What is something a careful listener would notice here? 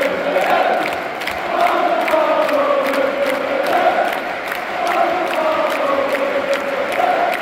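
Football supporters clap along in rhythm.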